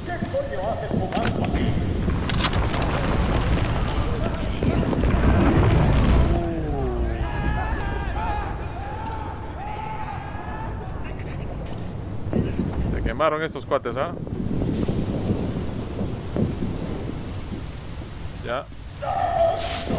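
A young man speaks into a microphone close by.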